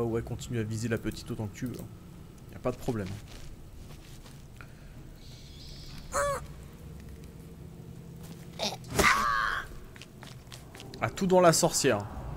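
Magic spells burst and whoosh during a fight.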